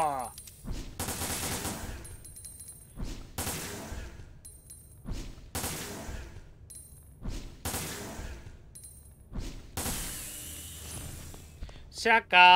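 Pistol shots ring out one after another with echoing tails.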